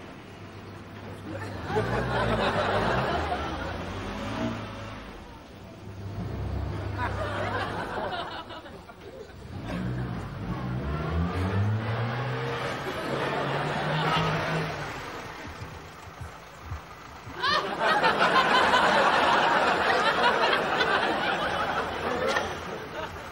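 A small car engine idles and revs.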